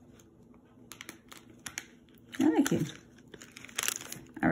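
Small plastic toy pieces click and snap together.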